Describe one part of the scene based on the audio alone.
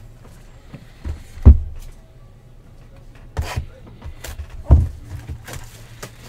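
Cardboard boxes knock and thump as hands handle them.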